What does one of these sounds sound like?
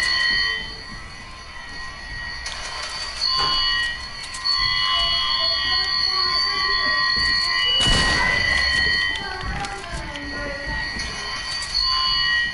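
Wooden walls clatter as they are built.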